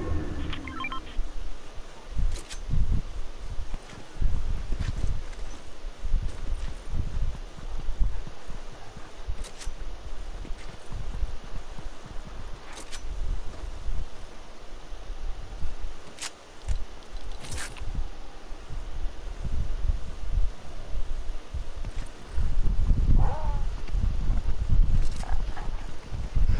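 Footsteps thud quickly on grass and ground as a game figure runs.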